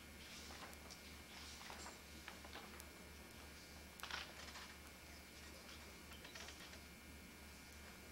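A crowd of children and adults murmurs and chatters quietly in a large echoing hall.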